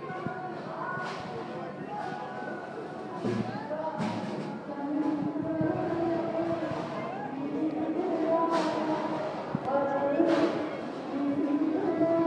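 A crowd of people chatter around.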